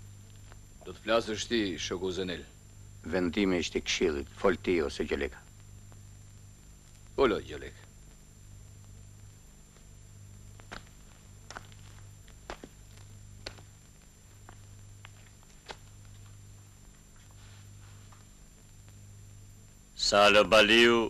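A man speaks loudly and firmly, pausing between phrases.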